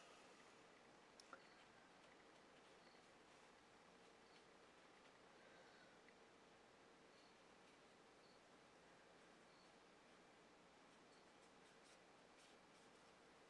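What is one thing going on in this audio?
A paintbrush softly brushes across paper.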